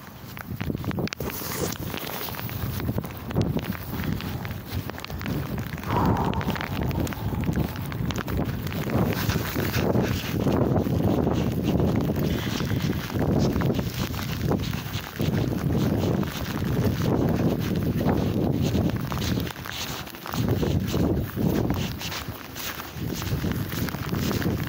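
Fabric rubs and rustles loudly close to the microphone.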